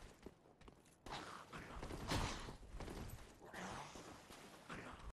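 A sword clashes and strikes against armour.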